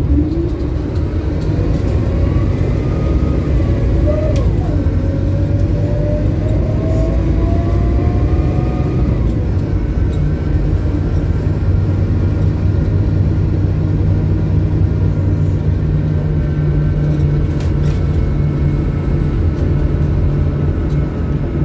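Loose fittings rattle as a bus drives.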